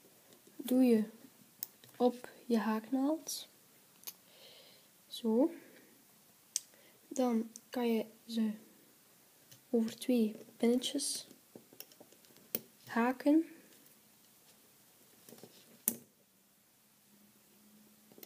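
A small plastic hook clicks and taps against a plastic loom.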